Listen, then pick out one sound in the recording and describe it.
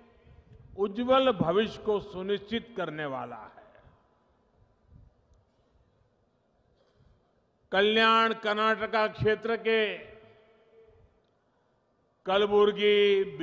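An elderly man gives a speech through a microphone and loudspeakers, speaking forcefully with pauses.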